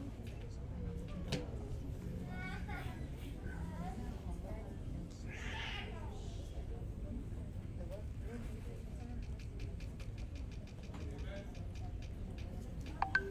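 A crowd of men and women murmurs and chatters quietly nearby in a large room.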